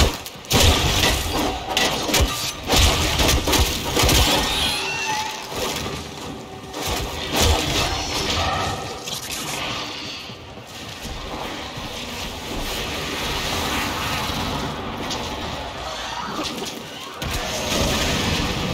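Weapons fire and slash with sharp, repeated impacts.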